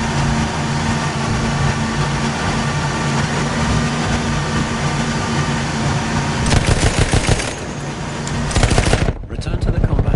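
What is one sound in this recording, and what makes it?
A boat engine drones loudly and steadily.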